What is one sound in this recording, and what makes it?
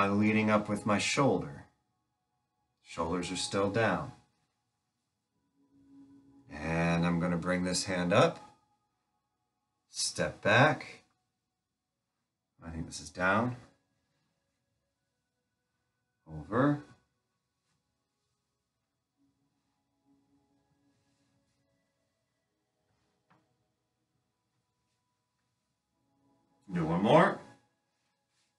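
A man speaks calmly in short phrases, close by.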